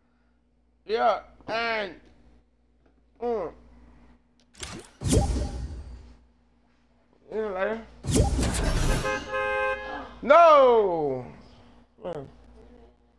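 A young man talks and exclaims loudly into a close microphone.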